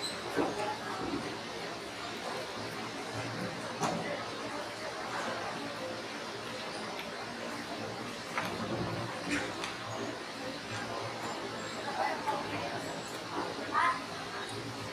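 Chess pieces click on boards now and then.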